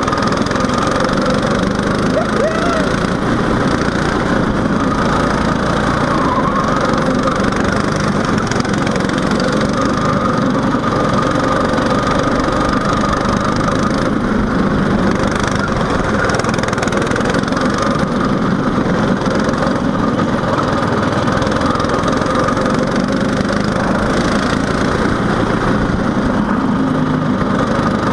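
A small kart engine buzzes loudly up close, rising and falling in pitch as the kart speeds up and slows down.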